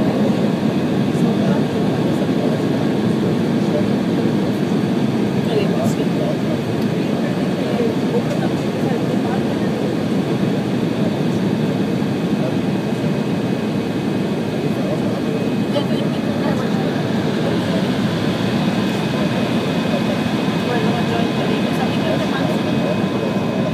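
Jet engines roar steadily, heard from inside an aircraft cabin.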